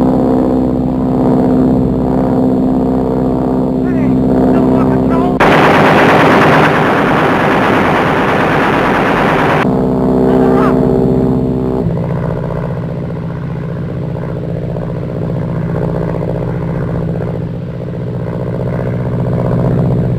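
A propeller plane's engine drones loudly and steadily.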